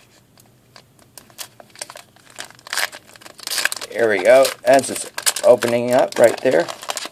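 A foil wrapper crinkles and rustles in hands.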